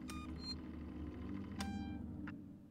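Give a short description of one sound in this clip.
A button clicks on a control panel.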